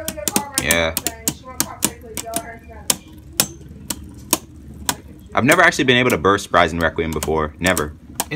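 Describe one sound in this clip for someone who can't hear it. Two spinning tops clash against each other with sharp, rapid clicks.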